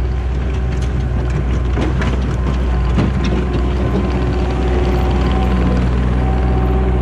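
A diesel engine of a tracked loader rumbles steadily up close.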